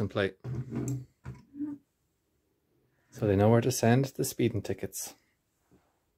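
A small plastic toy truck is set down on a wooden table with a light knock.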